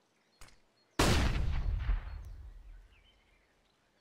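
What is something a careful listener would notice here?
A stun grenade goes off with a loud bang and a fading ring.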